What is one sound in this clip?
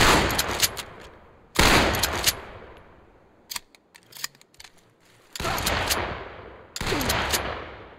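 A rifle fires single loud shots that echo off the hills.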